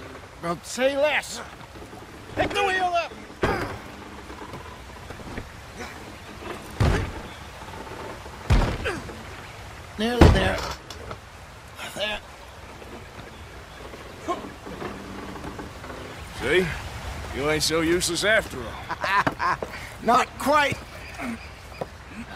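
Men talk in gruff voices, close by.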